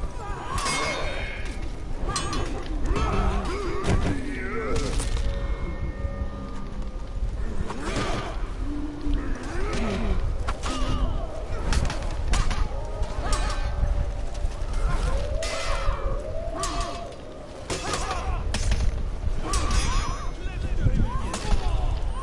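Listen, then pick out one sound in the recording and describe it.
Swords clash and strike sharply again and again.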